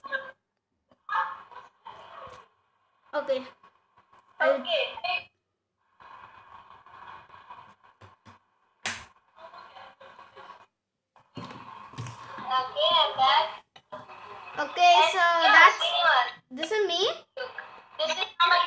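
A boy speaks through a phone on a video call.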